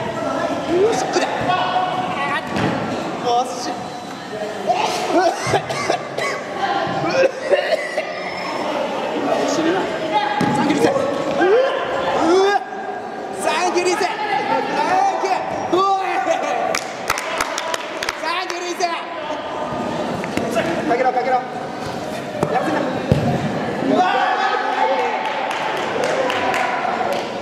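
Men shout to each other across a large echoing indoor hall.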